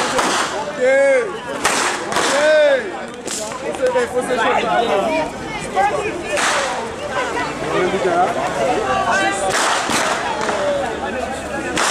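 Whips crack loudly and sharply, again and again.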